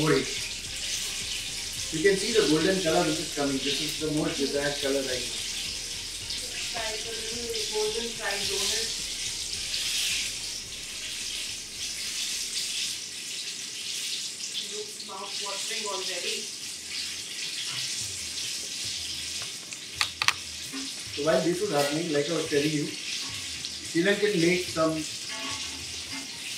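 Hot oil sizzles and crackles steadily in a pan.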